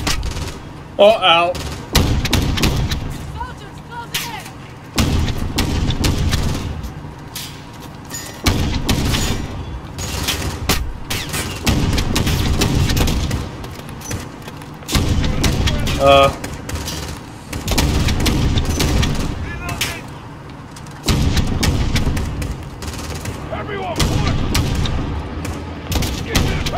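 A rifle fires loud, booming shots again and again.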